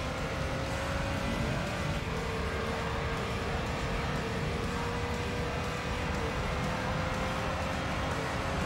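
A racing car engine roars steadily at high revs, shifting gear once.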